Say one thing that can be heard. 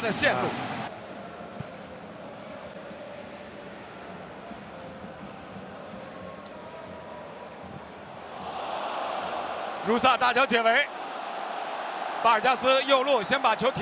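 A large crowd roars and murmurs in a stadium.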